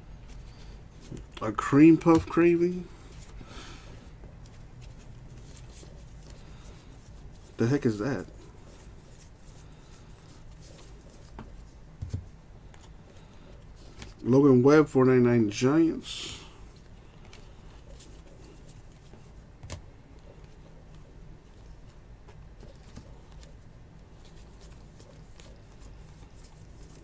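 Trading cards rustle and slide softly against each other in hands.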